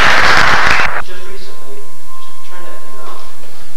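A man speaks faintly from a distance in an echoing hall.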